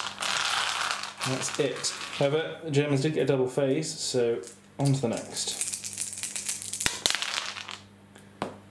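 Dice clatter and tumble onto a hard table.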